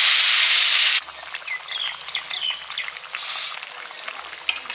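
A thick stew bubbles and pops in a pot.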